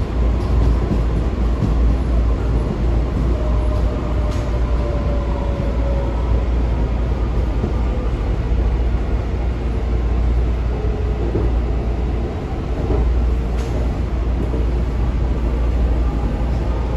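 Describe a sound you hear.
A train car rumbles and whirs steadily as it runs along the tracks.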